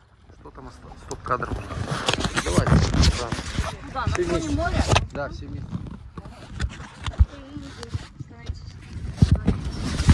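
A man talks close to the microphone.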